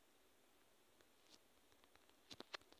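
Fingers tap quickly on a phone's touchscreen keyboard.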